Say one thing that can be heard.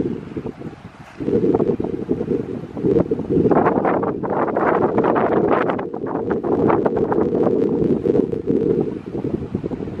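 Small waves wash gently against rocks.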